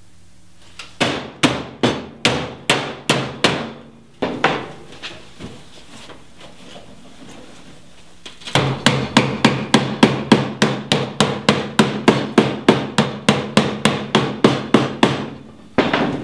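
A hammer bangs rapidly on sheet metal.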